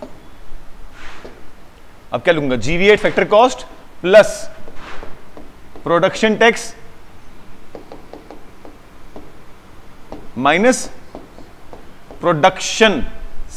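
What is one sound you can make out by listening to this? A man explains calmly through a microphone, in short phrases with pauses.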